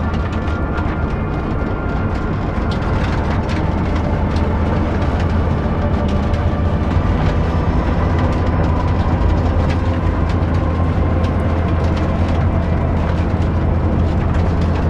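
Tyres crunch and rattle over a rough dirt road.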